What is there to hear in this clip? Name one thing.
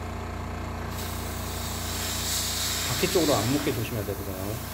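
An airbrush hisses as it sprays paint.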